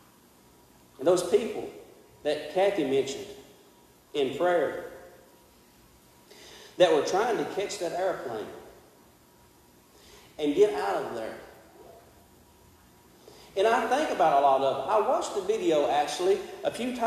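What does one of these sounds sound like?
A man preaches through a microphone in an echoing hall, speaking in bursts with pauses.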